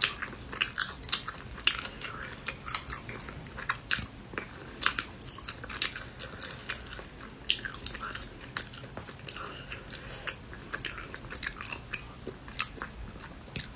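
Crunchy food cracks and crackles as it is pulled apart by hand.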